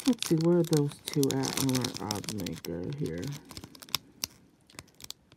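A foil wrapper tears open.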